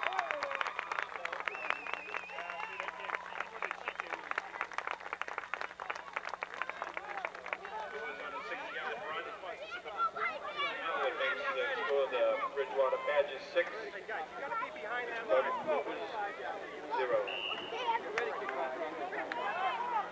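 Young boys shout to each other on a field.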